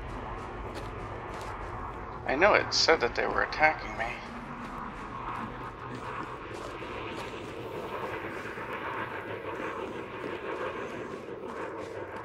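A spacecraft engine hums steadily nearby.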